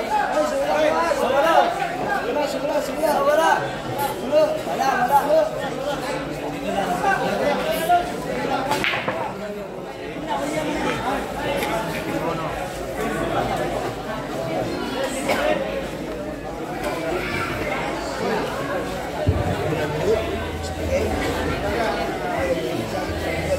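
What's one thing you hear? A crowd of men chatter and call out nearby.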